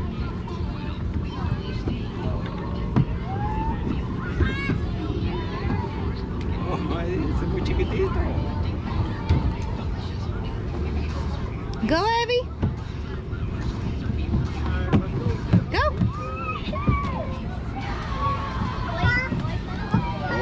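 Children's feet thump on a plastic slide.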